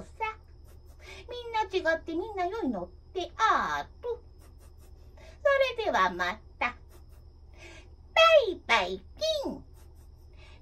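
A woman sings close by with sliding, wavering notes.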